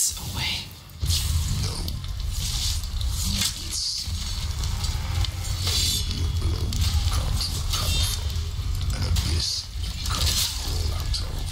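Blades clash and strike in a fierce fight.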